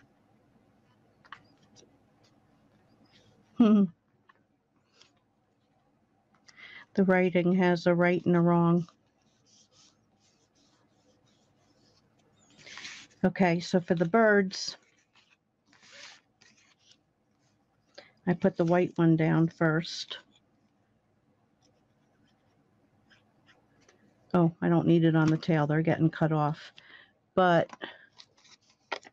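Card paper rustles and slides as it is handled.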